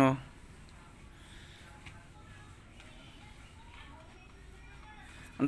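Cloth rustles softly as it is smoothed and folded.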